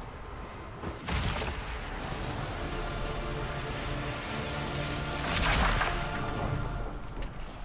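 A magical blast roars and crackles.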